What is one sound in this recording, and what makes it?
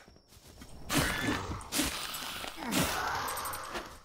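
Sharp blows land in a quick fight.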